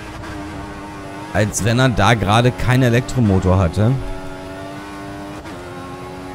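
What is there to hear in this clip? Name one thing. A racing car engine drones steadily.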